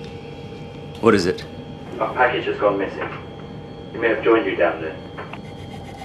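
A young man speaks tensely into a walkie-talkie, close by.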